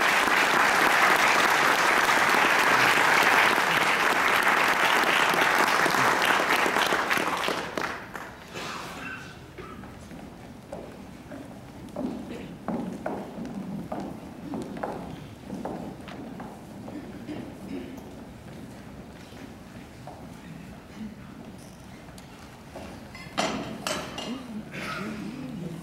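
Footsteps shuffle and knock on a wooden stage in an echoing hall.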